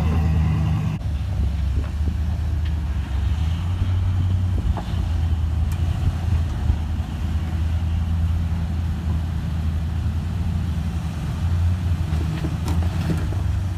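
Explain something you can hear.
A jeep engine idles and rumbles low as it crawls over rock.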